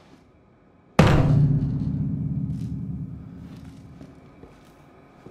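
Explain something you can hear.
Piano keys are struck in a loud, low chord that slowly rings out.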